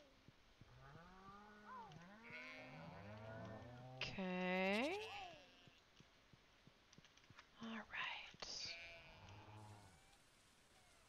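A cow moos several times.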